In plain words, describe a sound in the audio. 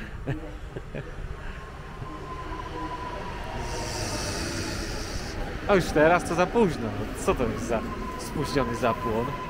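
A train rolls in and rumbles closer.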